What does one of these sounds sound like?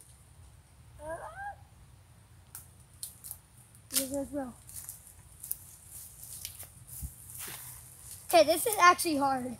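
Young children talk and call out nearby.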